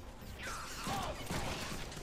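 A fist strikes a body with a heavy thud.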